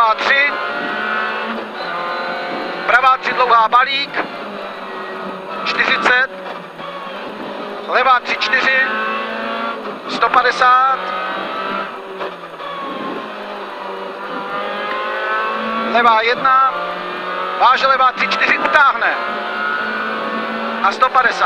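A rally car engine revs hard and rises and falls through the gears.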